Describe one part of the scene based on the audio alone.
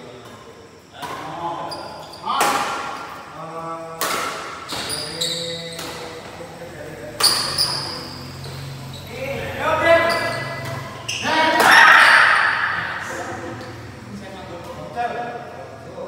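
Badminton rackets smack a shuttlecock back and forth.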